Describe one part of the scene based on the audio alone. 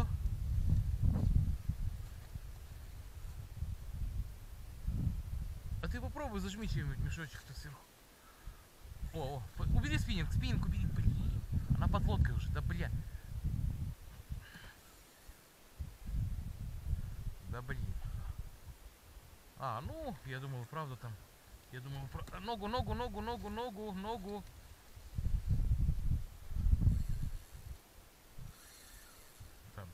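Wind rumbles across the microphone on open water.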